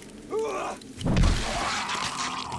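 A heavy club thuds against a body.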